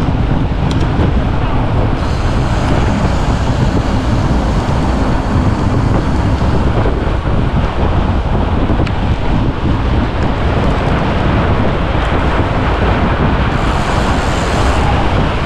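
Fat bike tyres crunch over packed snow.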